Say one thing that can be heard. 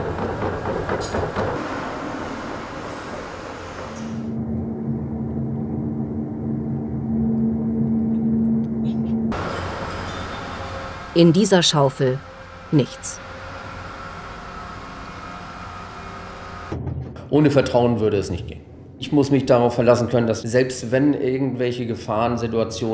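An excavator engine rumbles and hums steadily.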